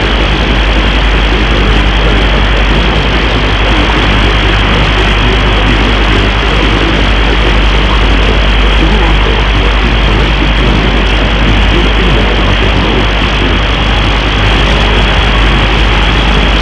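A low hum drones steadily from a radio receiver.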